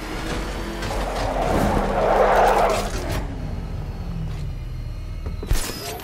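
A powerful vehicle engine roars and rumbles.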